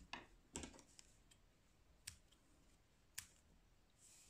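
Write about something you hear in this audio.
Scissors snip through yarn.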